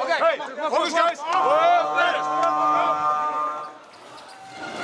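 A group of young men shout together in a huddle.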